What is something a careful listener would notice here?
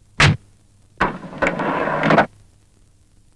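A van's sliding door rolls open.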